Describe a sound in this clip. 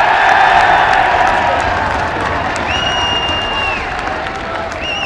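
A crowd cheers loudly in a large open stadium and slowly quietens.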